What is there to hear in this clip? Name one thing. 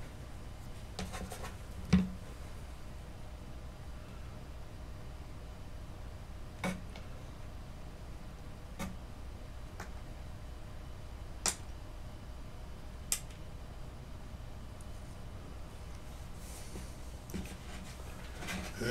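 Small tools knock and tap on a table.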